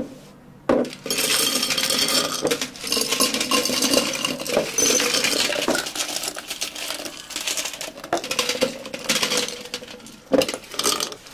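Ice cubes clatter into glass jars.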